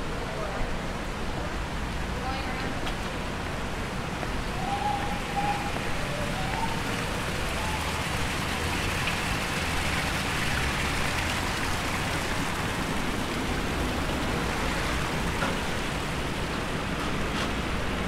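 Water from a fountain splashes steadily.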